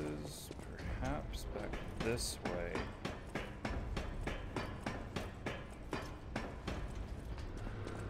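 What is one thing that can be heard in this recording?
Footsteps clank steadily on metal ladder rungs.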